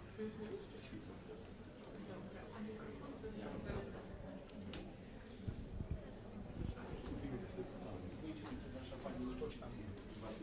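A crowd of men and women murmur and chat in a large echoing hall.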